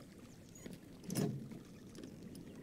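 A heavy wooden chest lid opens with a thud.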